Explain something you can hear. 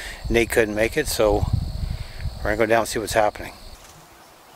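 An older man speaks calmly, close to the microphone.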